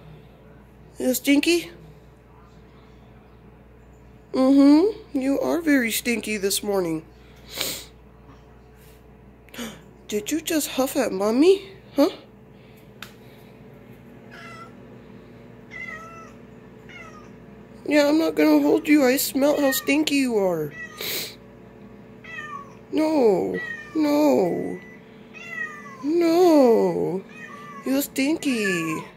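A kitten meows loudly and repeatedly, close by.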